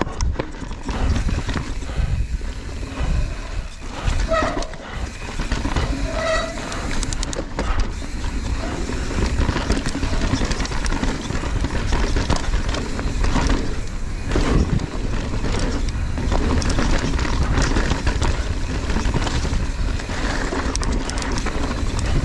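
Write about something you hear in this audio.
A bicycle rattles and clatters over bumps and rocks.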